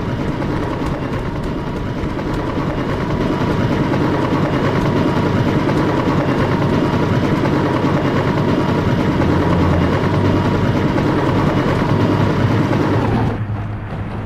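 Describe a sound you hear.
A helicopter's rotor thumps loudly and steadily nearby.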